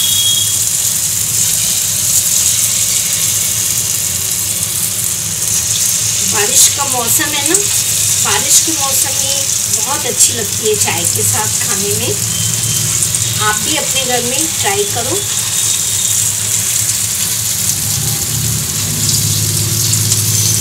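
Batter drops into hot oil with a burst of sizzling.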